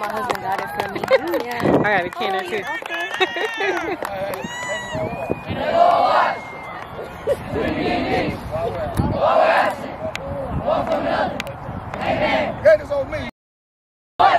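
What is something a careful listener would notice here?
Boys and men chant and shout together outdoors.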